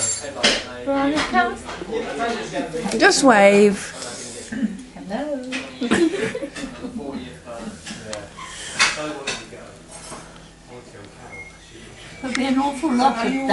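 A young woman laughs and talks with animation close by.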